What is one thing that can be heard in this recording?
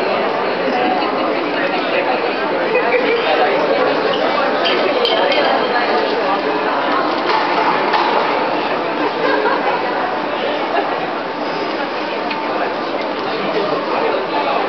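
Many people talk at once in a large echoing hall.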